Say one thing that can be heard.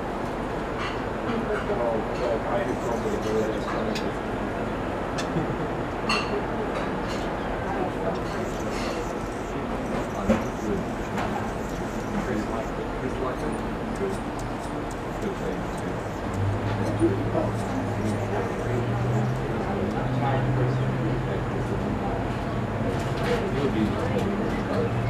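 Wind rustles through leafy trees outdoors.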